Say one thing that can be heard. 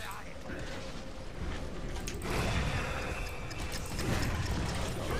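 Magic spells crackle and blast in a video game battle.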